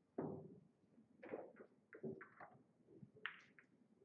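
A cue stick strikes a billiard ball with a sharp click.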